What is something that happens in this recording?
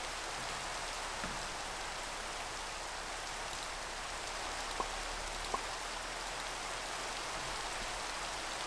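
Rain falls steadily with a soft hiss.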